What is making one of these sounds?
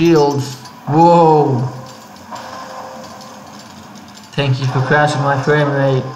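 Coins jingle and scatter.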